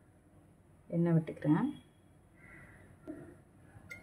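Oil pours from a bottle into a pan.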